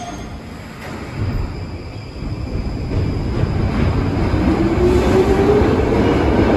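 A subway train's motor whines upward in pitch as the train speeds up.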